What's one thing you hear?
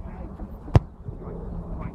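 A ball is kicked with a sharp thump.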